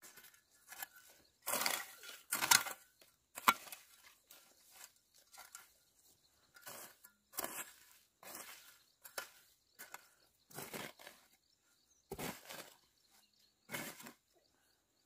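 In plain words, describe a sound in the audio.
A hoe chops into dry soil with sharp scraping thuds.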